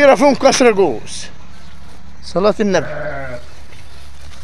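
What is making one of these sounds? Sheep bleat loudly close by.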